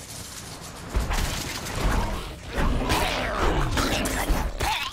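A monster growls and roars.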